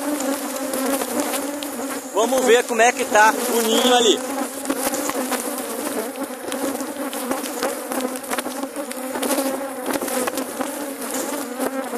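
A swarm of bees buzzes steadily close by.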